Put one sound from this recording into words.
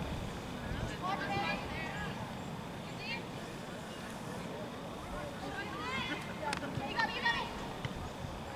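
Young women shout to each other across an open field in the distance.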